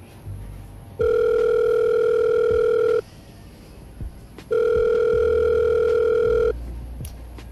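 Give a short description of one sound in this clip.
A phone ringing tone beeps steadily through a handset in two long bursts.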